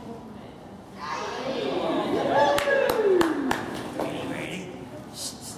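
A woman calls commands to a dog in a large echoing hall.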